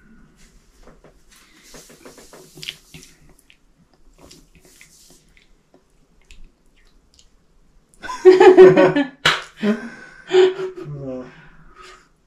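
A young woman gulps a drink from a bottle.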